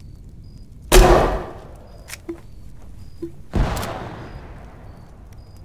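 A rifle fires two loud shots that echo briefly.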